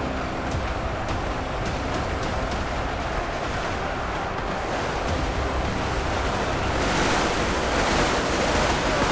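A huge army marches with a dense, heavy rumble of footsteps and clanking armour, growing louder toward the end.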